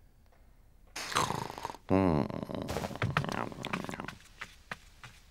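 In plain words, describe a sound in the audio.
A small animal snores softly in its sleep.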